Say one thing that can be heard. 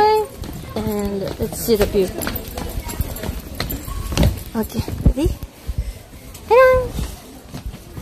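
A young woman talks close up, with animation.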